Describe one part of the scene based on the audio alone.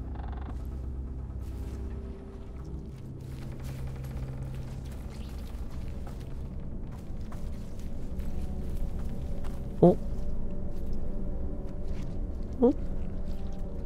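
Light footsteps walk over grass and dirt.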